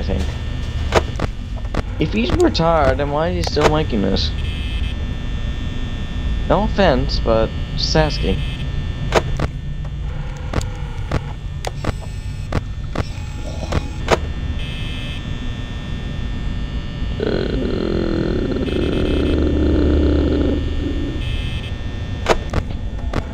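An electric desk fan whirs with a low hum.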